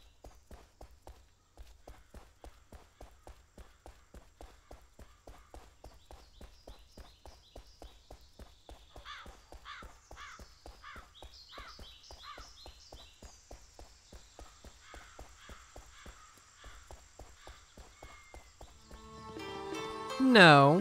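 Footsteps run quickly over stone.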